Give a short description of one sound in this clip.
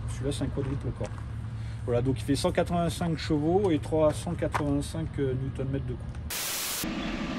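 A man speaks calmly close by, outdoors.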